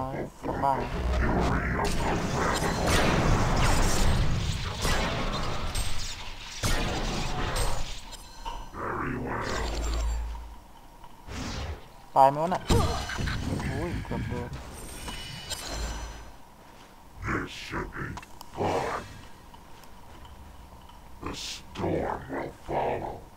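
Game spells crackle and blast during a fight.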